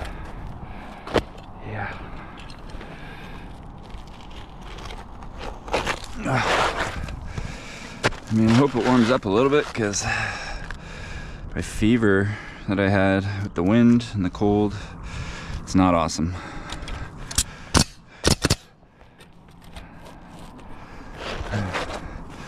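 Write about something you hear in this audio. A roofing shingle scrapes and rustles as it is laid down.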